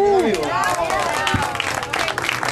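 A man shouts with excitement up close.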